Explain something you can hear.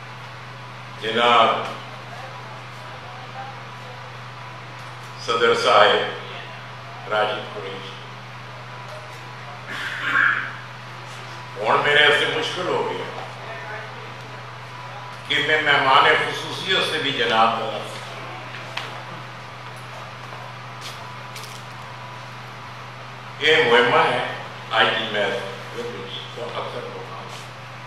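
An elderly man speaks slowly and formally through a microphone, with pauses.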